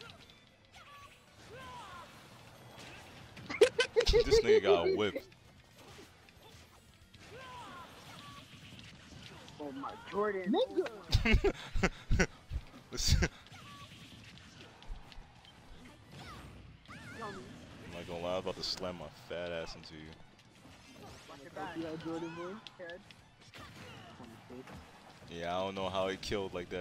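Blows and blasts thud and crack in a fast video game fight.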